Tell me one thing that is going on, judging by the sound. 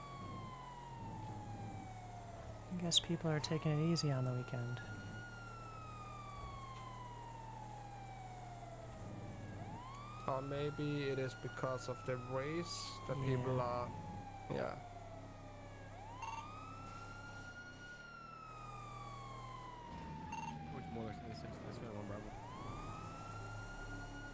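An ambulance siren wails steadily, rising and falling.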